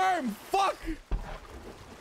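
A man speaks animatedly and close into a microphone.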